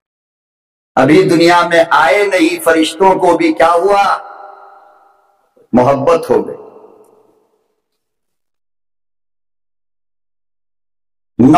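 An elderly man preaches forcefully into a microphone, heard through loudspeakers with a ringing echo.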